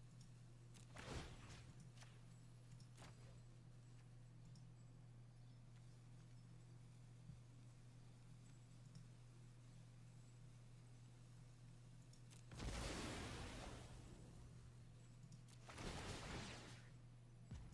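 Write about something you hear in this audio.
A digital card game plays whooshing sound effects.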